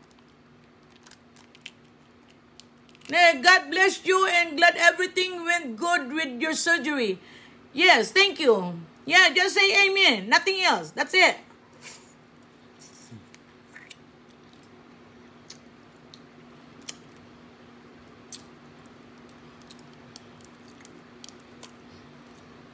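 Crawfish shells crack and crunch as a woman peels them.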